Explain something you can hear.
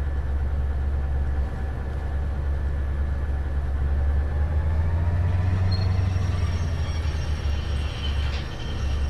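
Wheels clatter on the rails.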